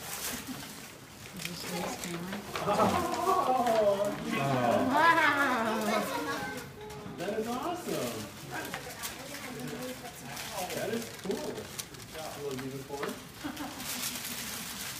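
Young children chatter and squeal excitedly nearby.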